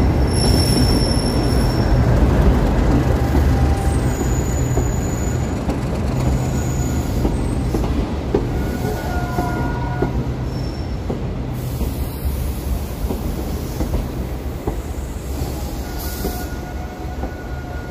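A diesel train engine rumbles and hums steadily close by.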